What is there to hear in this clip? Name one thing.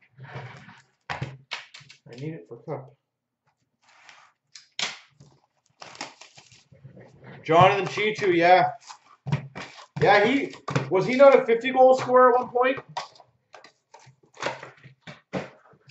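Cardboard boxes rustle and tap as they are handled.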